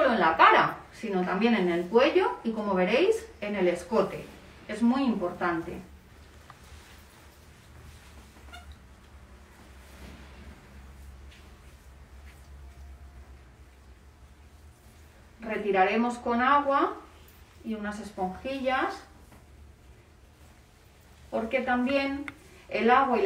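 A woman speaks calmly close by, in short bursts with pauses.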